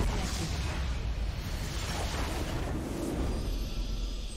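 A loud game explosion rumbles and booms.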